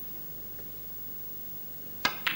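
A cue strikes a ball with a sharp click.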